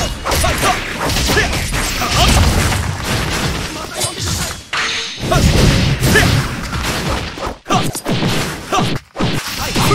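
Punches and energy blasts strike in quick, rapid bursts.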